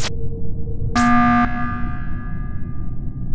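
A video game's emergency alarm blares.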